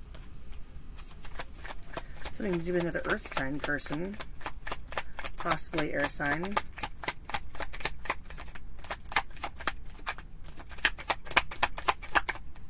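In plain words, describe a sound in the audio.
Cards shuffle with quick, crisp flicking.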